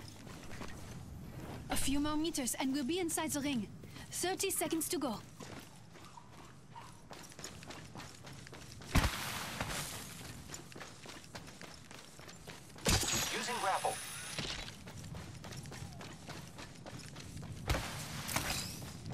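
Footsteps crunch on sand at a steady run.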